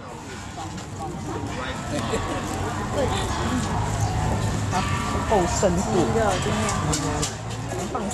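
Several men and women chat nearby outdoors.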